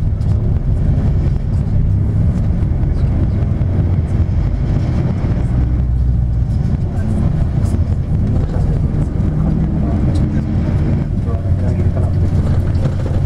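Traffic passes close by outside.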